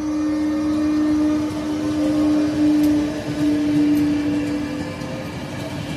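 Passenger coach wheels clatter over rail joints.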